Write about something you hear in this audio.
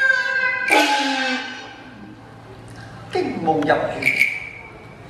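A young man sings in a high, drawn-out operatic voice.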